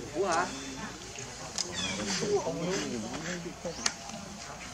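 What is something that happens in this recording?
A young monkey squeals and whimpers close by.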